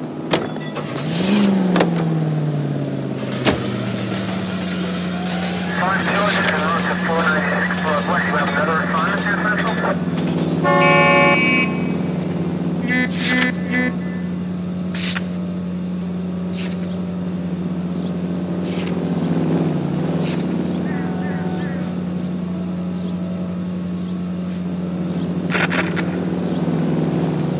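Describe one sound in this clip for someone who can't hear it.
A car engine starts and then idles steadily.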